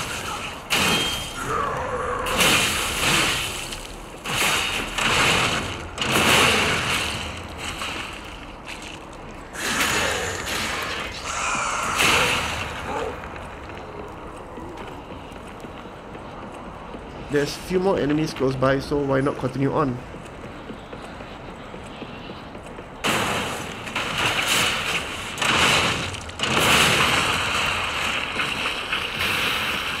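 Heavy blades swing and strike in sword combat.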